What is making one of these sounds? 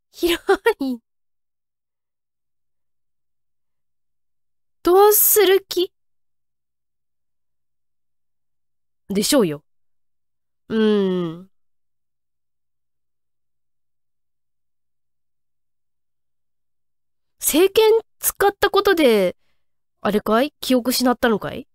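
A young woman speaks into a microphone in short, lively bursts with pauses between.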